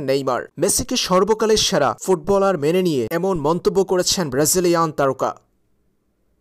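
A man speaks quickly and with animation, close to a microphone.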